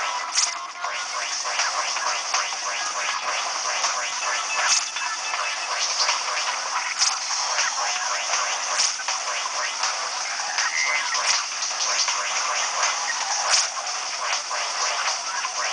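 Arcade game shots fire in a rapid, steady stream.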